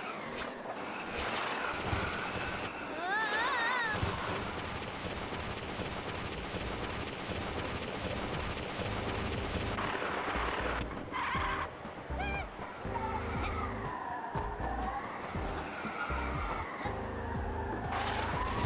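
Wind blows steadily in a storm.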